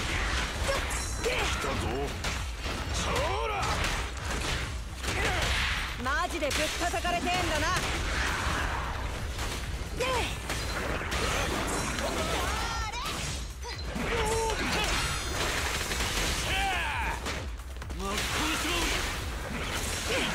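Blades slash and clang in a fast fight.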